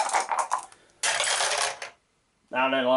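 Dice clatter and tumble down a plastic dice tower.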